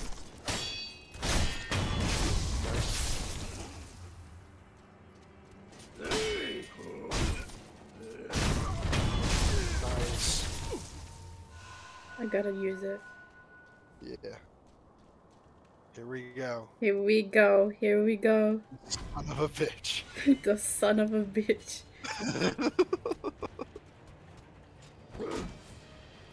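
Swords clash and clang with metallic strikes.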